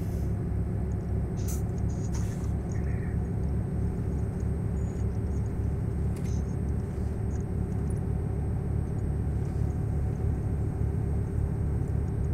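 A truck engine rumbles low and steady while driving.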